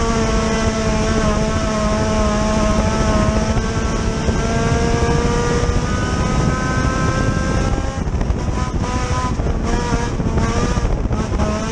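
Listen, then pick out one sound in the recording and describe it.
Tyres rumble over a dirt track.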